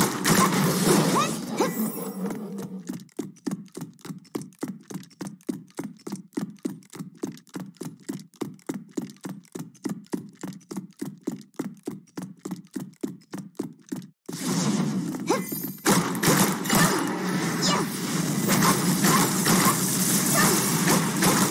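Blasts and slashing hits crash loudly in a fight.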